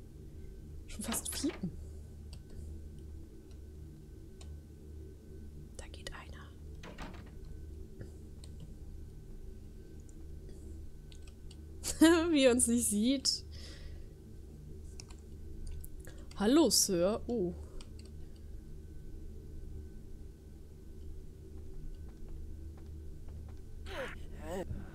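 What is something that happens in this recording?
A young woman talks with animation into a microphone, now and then.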